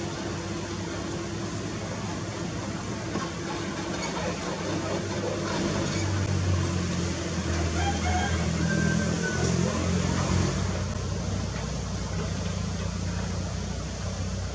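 Excavator engines rumble steadily.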